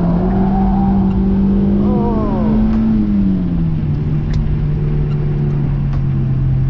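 Wind rushes past an open-top car.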